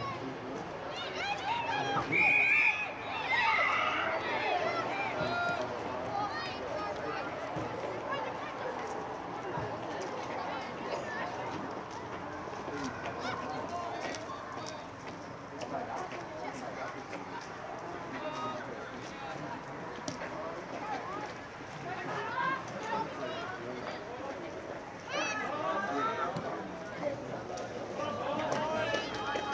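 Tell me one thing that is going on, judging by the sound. Teenage boys shout and call to each other outdoors on an open field.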